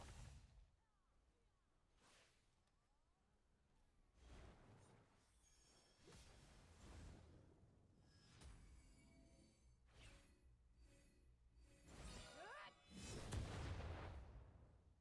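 Magic blasts and weapon hits burst and crash again and again.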